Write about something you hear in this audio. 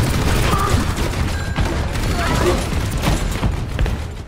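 A grenade launcher fires with heavy, hollow thumps.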